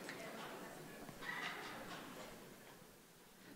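A young boy speaks calmly into a microphone, heard over loudspeakers in a large hall.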